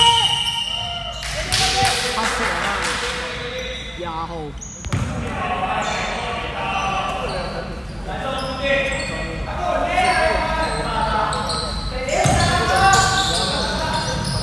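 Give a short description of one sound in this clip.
Basketball shoes squeak on a hardwood floor in a large echoing hall.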